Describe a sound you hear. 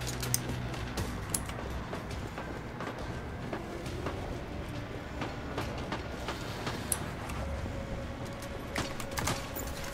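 Footsteps tap across a soft floor.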